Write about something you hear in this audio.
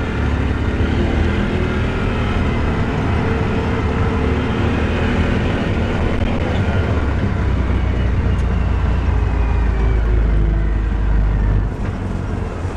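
A small vehicle engine rumbles steadily while driving.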